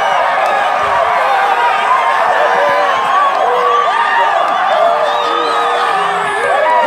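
A crowd of men and women cheers and shouts loudly outdoors.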